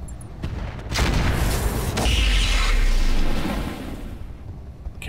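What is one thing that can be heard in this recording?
Energy weapons fire in a loud, rushing burst.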